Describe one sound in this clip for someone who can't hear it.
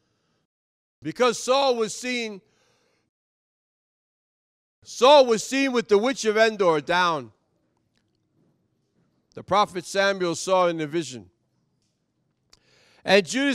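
A man preaches with animation into a microphone, in bursts separated by pauses.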